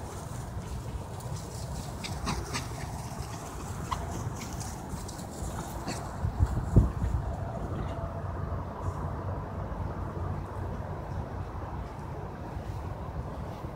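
Small dogs run and patter through the grass.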